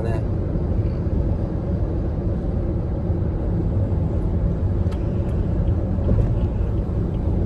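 A car engine hums and tyres rumble steadily on the road inside a moving car.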